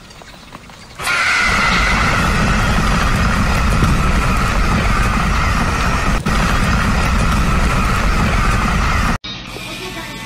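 A flock of chickens clucks and flutters all at once.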